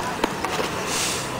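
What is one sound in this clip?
A skateboard clatters onto concrete.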